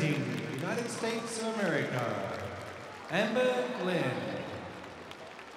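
A crowd cheers and whistles loudly, then quiets down.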